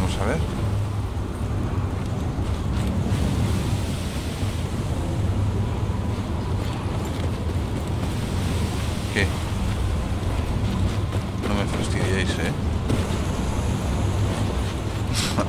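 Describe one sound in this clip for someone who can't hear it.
A strong storm wind roars outside.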